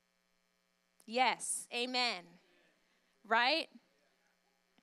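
A young woman speaks with animation into a microphone, heard through a loudspeaker.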